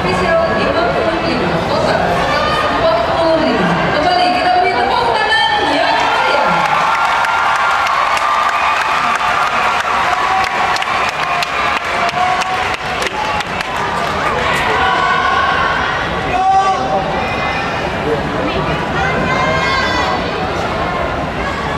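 A large crowd cheers and shouts in an echoing arena.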